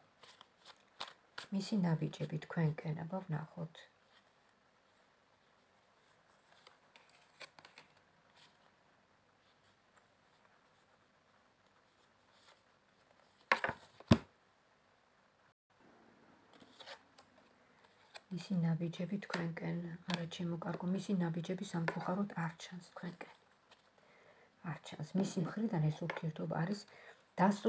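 Cards shuffle and flick softly between hands.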